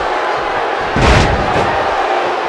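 A body slams hard onto a wrestling mat with a heavy thud.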